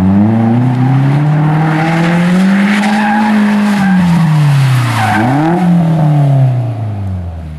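Car tyres screech on pavement.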